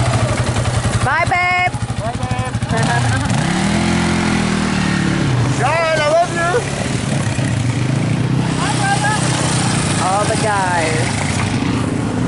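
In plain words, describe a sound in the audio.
A quad bike engine revs up sharply several times.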